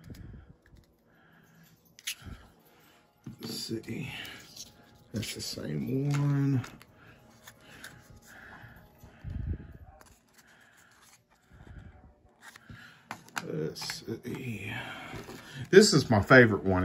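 Small cardboard boxes rustle and tap as they are handled.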